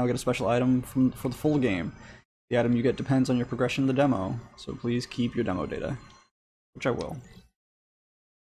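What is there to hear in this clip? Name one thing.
A young man talks casually and close to a microphone.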